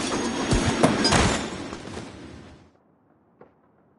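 A skateboarder crashes and tumbles to the ground.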